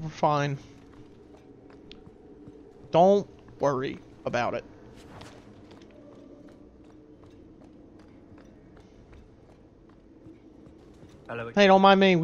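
Armoured footsteps clank softly on a stone floor.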